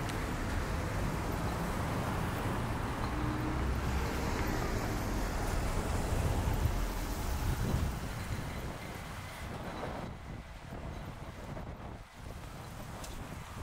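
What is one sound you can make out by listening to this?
Wind rumbles outdoors, strong at first and easing later.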